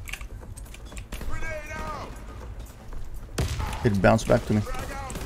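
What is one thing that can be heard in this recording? Keyboard keys click and clatter rapidly.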